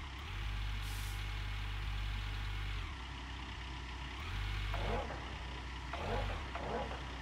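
A heavy excavator engine rumbles steadily.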